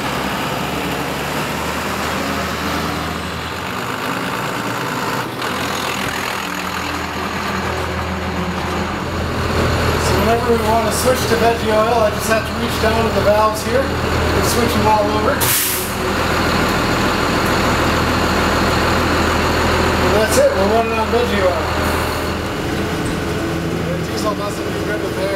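A bus engine idles with a low, steady rumble.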